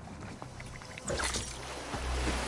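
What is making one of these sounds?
Water splashes loudly as something plunges into a pool.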